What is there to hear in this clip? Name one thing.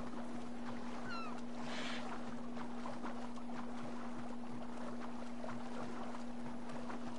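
Rough sea waves slosh and splash steadily.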